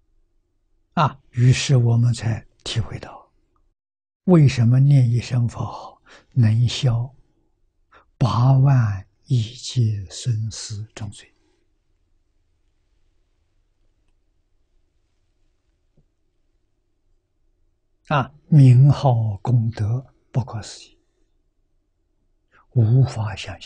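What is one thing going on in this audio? An elderly man speaks calmly, with long pauses, into a close microphone.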